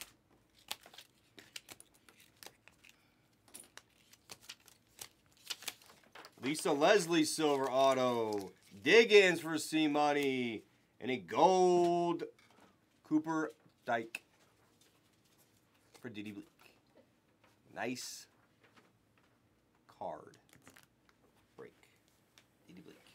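Plastic card cases click and clack as they are handled.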